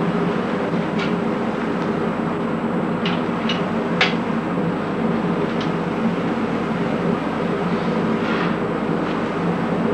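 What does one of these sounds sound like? A metal tool scrapes and taps against packed sand.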